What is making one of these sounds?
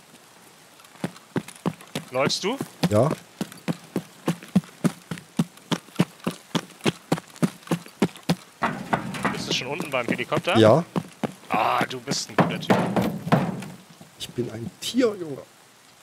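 Footsteps crunch quickly on gravel and concrete.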